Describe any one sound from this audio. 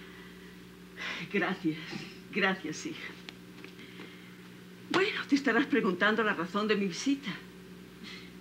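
An older woman speaks calmly nearby.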